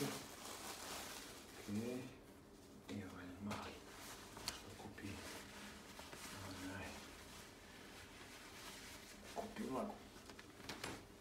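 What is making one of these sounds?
Fabric rustles close by.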